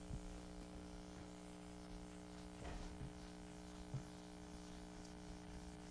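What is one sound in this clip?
An eraser rubs across a board.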